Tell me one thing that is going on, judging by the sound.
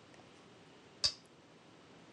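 A game stone clicks sharply onto a wooden board.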